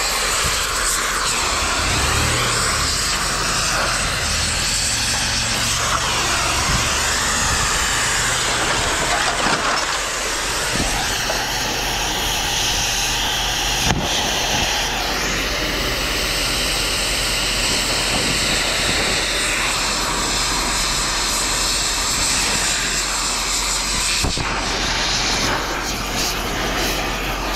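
A gas torch roars steadily as it cuts metal.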